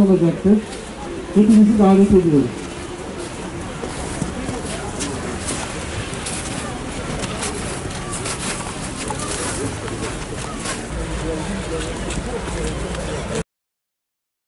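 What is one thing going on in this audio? A crowd murmurs.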